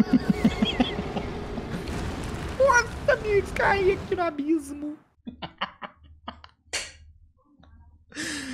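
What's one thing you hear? A young man speaks into a close microphone with animation, groaning and laughing.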